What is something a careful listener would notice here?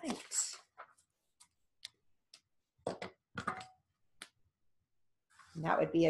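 A woman speaks calmly and close by, in short bursts.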